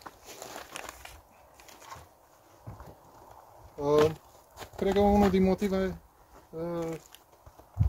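Wooden frames scrape and knock against a beehive.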